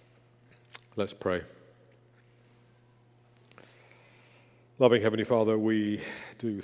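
A man speaks calmly and slowly through a microphone in a large echoing hall.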